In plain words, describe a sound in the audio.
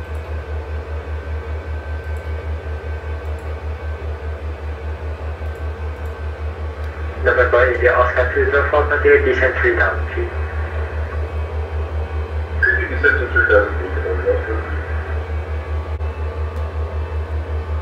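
A low aircraft engine drone throbs steadily.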